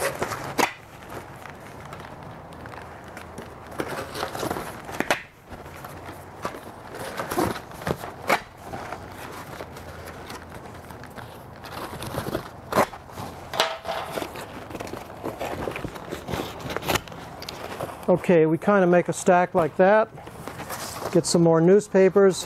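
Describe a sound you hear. Cardboard rustles and flaps as a man handles it.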